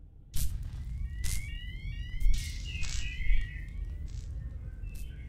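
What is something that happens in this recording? Sparks of electricity fizz and buzz in short bursts.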